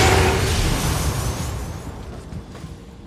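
A burst of magical energy crackles and slowly fades.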